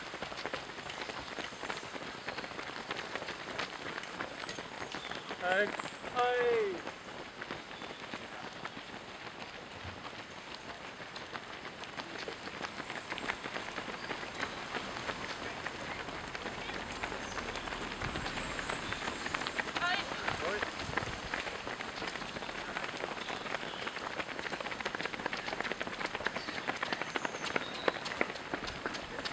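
Many runners' footsteps patter on a road.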